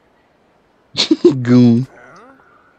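A man grunts questioningly up close.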